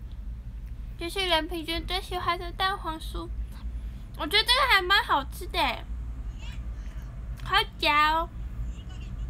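A young woman talks with high-pitched animation close to a microphone.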